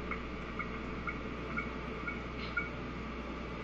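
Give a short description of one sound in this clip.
Short electronic menu beeps chime in a quick, even series.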